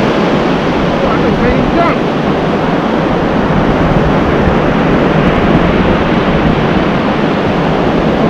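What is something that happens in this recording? Waves break and wash steadily onto a beach.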